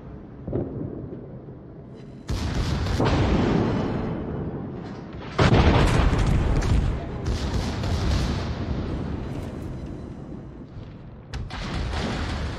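Heavy shells explode with deep booming blasts.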